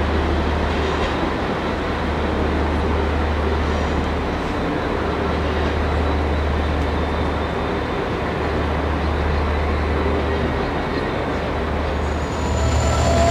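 A diesel locomotive engine rumbles deeply in an echoing station.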